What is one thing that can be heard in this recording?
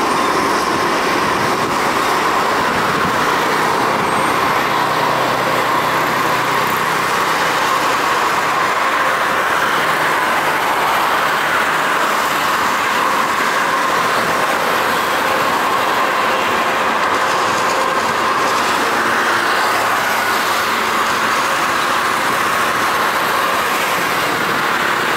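A jet airliner's engines roar loudly.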